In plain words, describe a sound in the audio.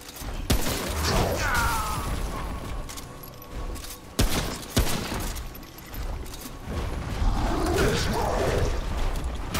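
A large beast growls and roars.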